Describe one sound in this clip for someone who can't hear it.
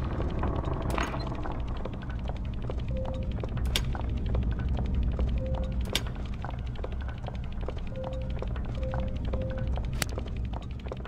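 Small metal gears click into place.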